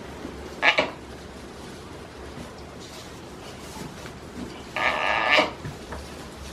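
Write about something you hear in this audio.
A goat bleats loudly close by.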